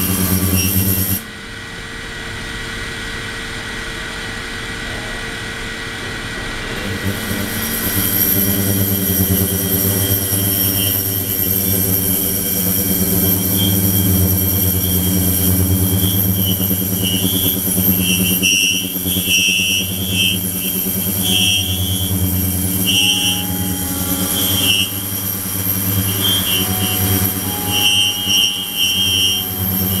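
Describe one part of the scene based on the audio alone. Water churns and sloshes steadily in a tank.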